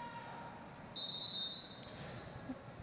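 A referee blows a short whistle blast.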